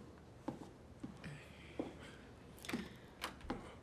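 A door clicks shut.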